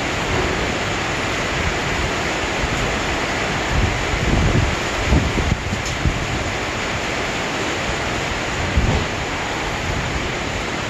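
A stopped train hums steadily nearby.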